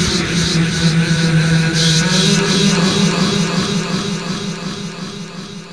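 An acoustic guitar strums along.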